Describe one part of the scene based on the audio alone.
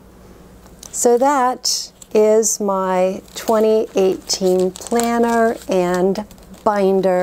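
A woman speaks warmly and with animation into a close microphone.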